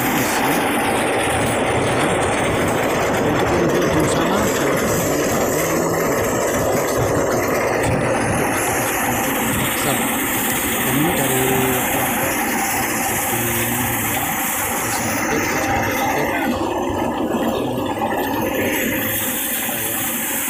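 A threshing machine engine rumbles and rattles steadily close by.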